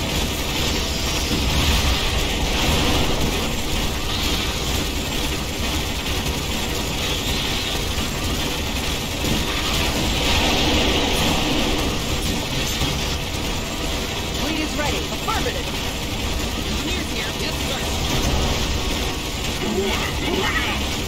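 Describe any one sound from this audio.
Gunfire rattles in bursts throughout.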